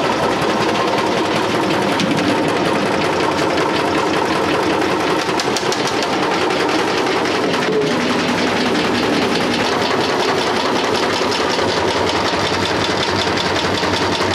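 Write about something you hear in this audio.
Grain pours and rattles along a metal chute.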